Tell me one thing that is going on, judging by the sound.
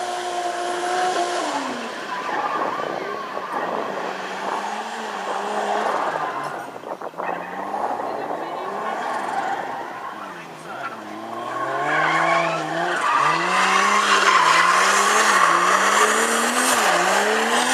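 A car engine revs hard, rising and falling as the car drifts.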